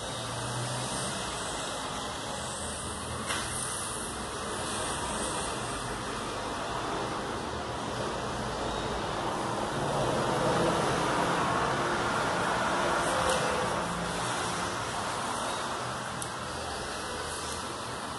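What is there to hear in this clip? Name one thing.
A squeegee rubs softly over plastic film.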